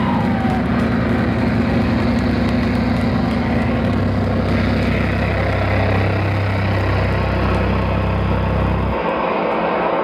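Electric guitars roar with heavy distortion.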